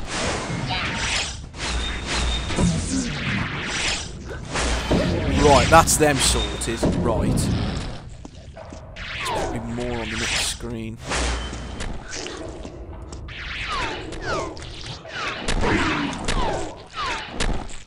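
A plasma cannon fires zapping energy shots.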